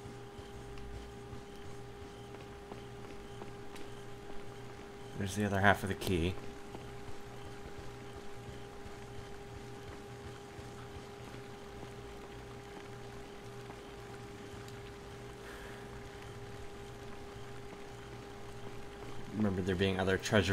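Footsteps walk steadily on stone.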